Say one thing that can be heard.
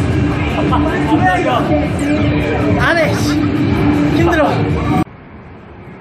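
Loud dance music with singing plays from an arcade machine's loudspeakers.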